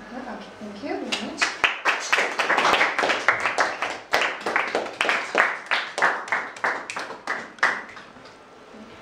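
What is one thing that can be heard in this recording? A group of people clap in a steady rhythm, then stop.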